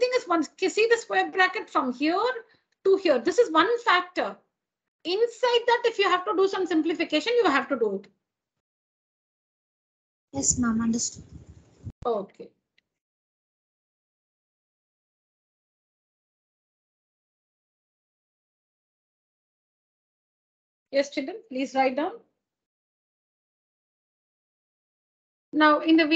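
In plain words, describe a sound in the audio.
A young woman explains calmly over an online call, with pauses.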